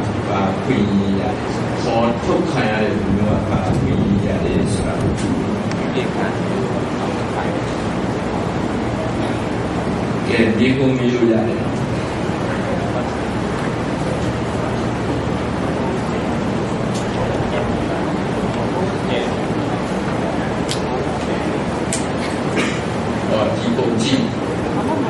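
An elderly man speaks calmly through a microphone.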